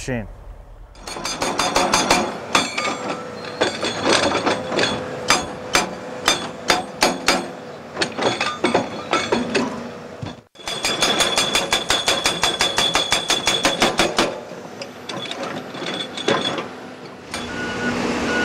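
A hydraulic hammer pounds rapidly on rock.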